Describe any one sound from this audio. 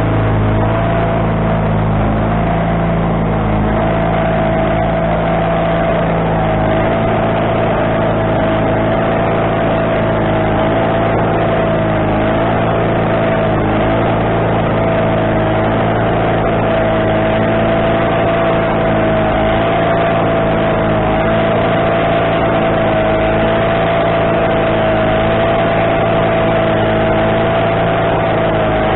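A sawmill engine drones steadily and loudly.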